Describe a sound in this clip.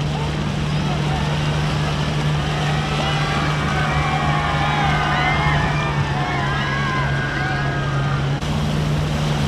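A large crowd outdoors cheers and shouts from a distance.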